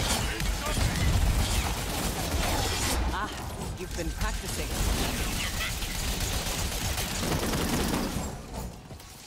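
Gunfire and energy blasts crackle loudly.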